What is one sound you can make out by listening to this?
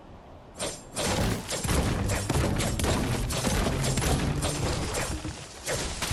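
A pickaxe strikes a tree trunk again and again.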